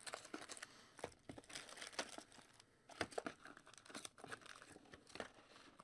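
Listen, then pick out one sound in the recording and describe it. Foil wrappers crinkle and rustle.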